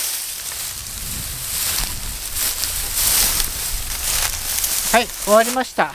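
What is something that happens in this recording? Dry grass rustles and crunches underfoot.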